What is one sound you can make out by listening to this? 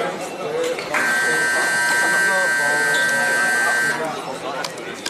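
A scoreboard buzzer sounds loudly and steadily.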